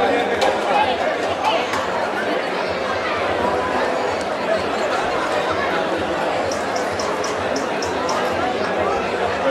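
A large outdoor crowd of men and women chatters and shouts excitedly nearby.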